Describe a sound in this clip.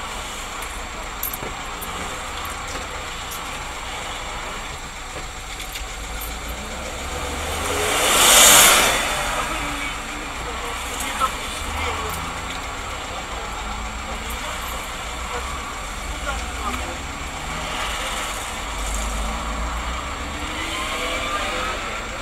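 A car engine hums steadily with road noise from inside the car.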